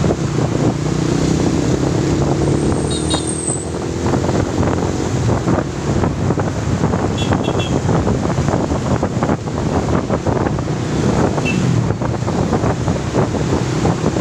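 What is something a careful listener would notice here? Motorcycle engines hum and buzz close by as they ride along a road.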